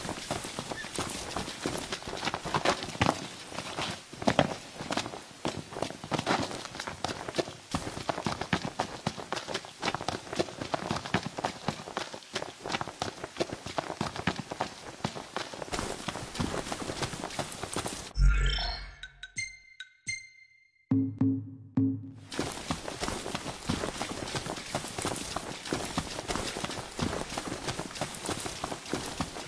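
Quick footsteps run through grass.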